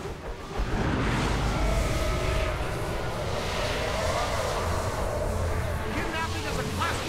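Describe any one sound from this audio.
Loud energy blasts and explosions boom in a video game.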